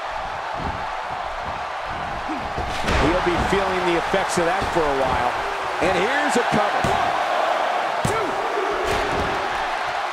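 A large crowd roars and cheers steadily in an echoing arena.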